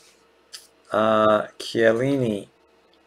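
A man speaks briefly into a microphone with animation.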